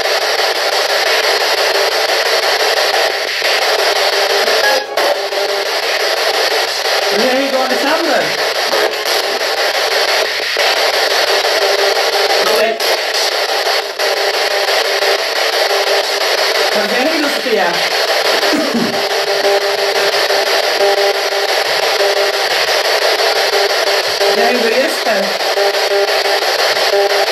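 A radio scanner hisses with loud, steady static.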